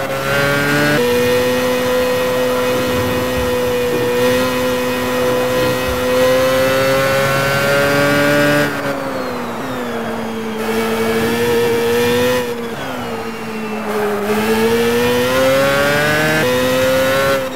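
A single-seater racing car engine jumps in pitch as gears shift.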